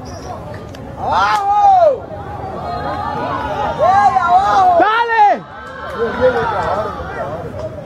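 A group of young men cry out loudly in alarm.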